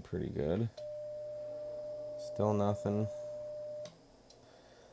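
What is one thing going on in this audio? A radio transceiver sounds a steady high beep while transmitting.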